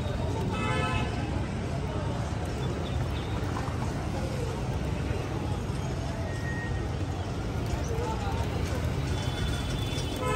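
Pigeon wings flap loudly as birds take off.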